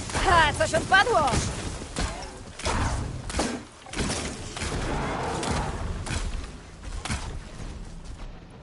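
Heavy blows and impacts thud.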